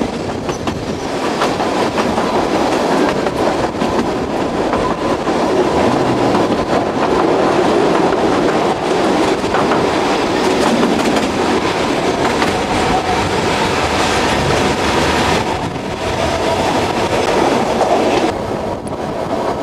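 Train wheels clatter and rumble steadily on the rails.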